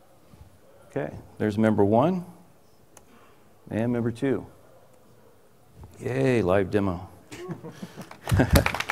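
A man speaks calmly through a microphone in a large hall.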